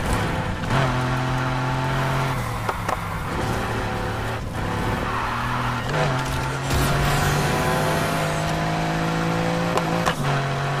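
A sports car engine roars steadily at high speed, shifting gears now and then.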